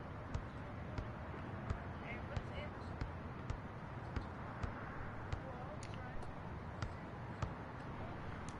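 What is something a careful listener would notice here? A basketball bounces in a steady dribble on a hard court.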